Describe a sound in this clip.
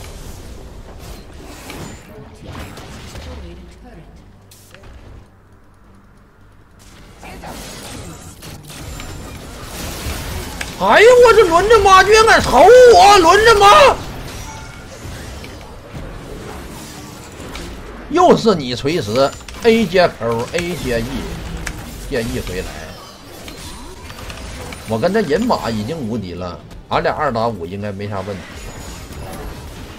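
Spell blasts and whooshes crackle in quick bursts.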